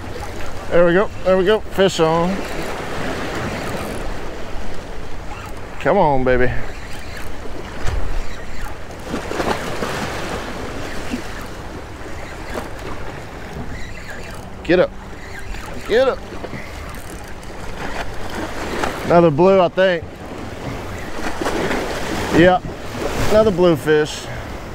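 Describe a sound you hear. A spinning fishing reel is cranked.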